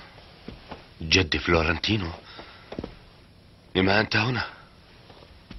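A man speaks tensely and close by, in short bursts.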